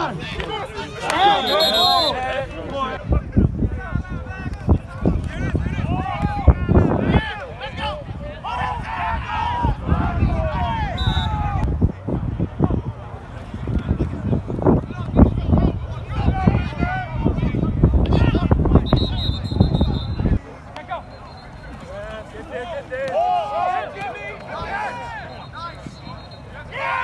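Young men shout and cheer nearby outdoors.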